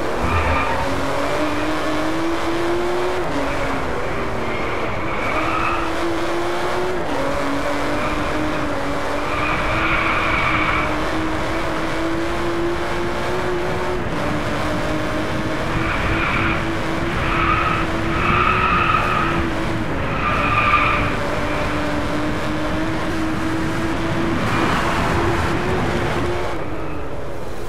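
A sports car engine revs hard while accelerating through the gears.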